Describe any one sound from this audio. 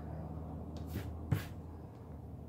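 A stamp block taps down onto paper.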